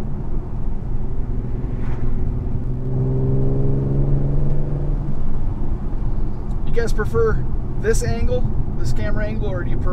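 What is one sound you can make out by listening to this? Tyres roll and rumble on a paved road.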